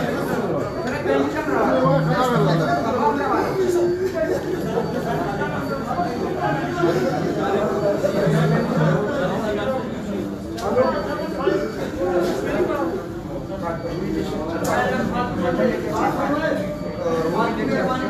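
A middle-aged man talks close to the microphone with animation.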